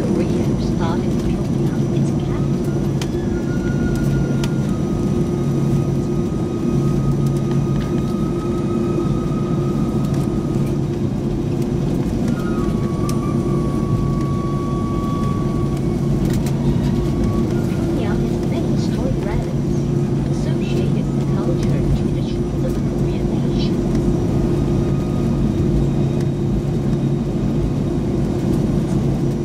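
An aircraft's wheels rumble over a taxiway.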